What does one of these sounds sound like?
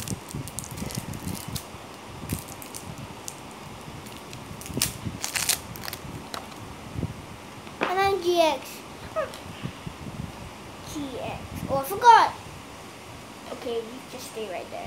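Playing cards rustle and snap as a boy shuffles them close by.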